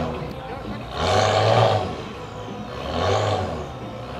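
A car engine revs loudly in short bursts.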